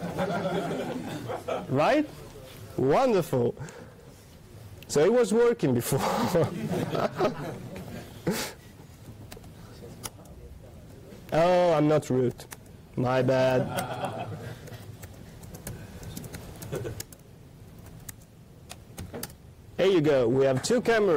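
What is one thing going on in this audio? A man speaks into a microphone, explaining calmly in a large hall.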